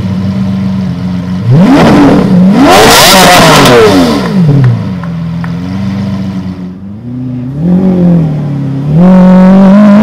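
A sports car engine idles and revs loudly with sharp throttle blips.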